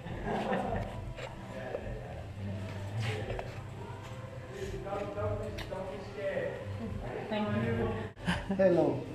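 A woman talks and laughs warmly close by.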